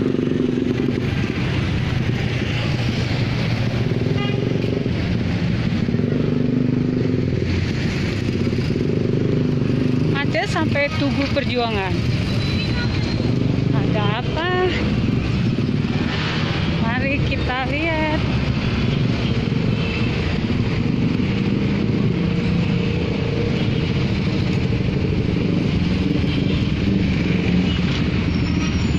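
Minibus and truck engines idle and rumble in heavy traffic close by.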